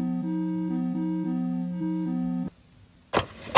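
A phone plays a short ringtone melody.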